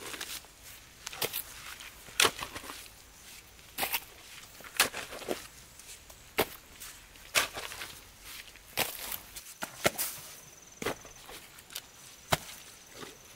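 A hoe chops into soil again and again with dull thuds.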